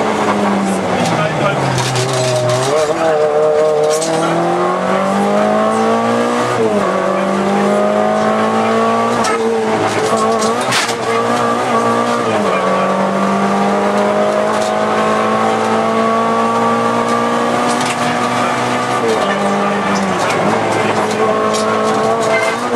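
A car engine roars loudly from inside, revving up and dropping as gears change.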